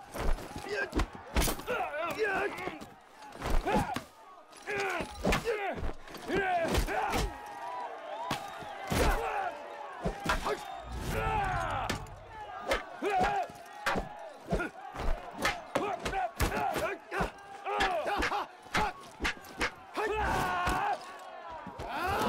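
A crowd of men shouts and cheers nearby.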